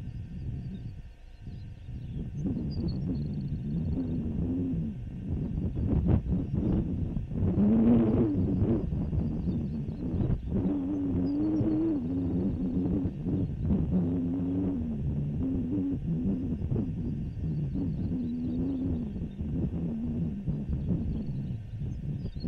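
Wind blows across open ground and buffets the microphone.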